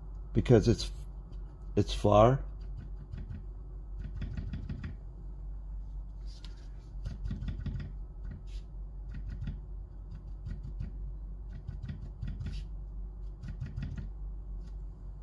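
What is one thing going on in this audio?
Chalk scratches and rubs softly on paper.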